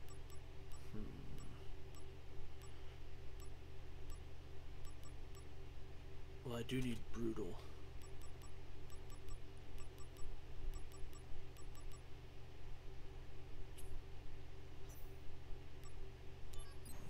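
Soft menu ticks click as a cursor moves through a list.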